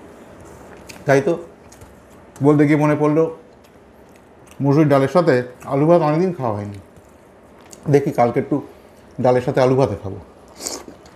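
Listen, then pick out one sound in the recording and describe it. A man talks calmly and close to a microphone, between mouthfuls.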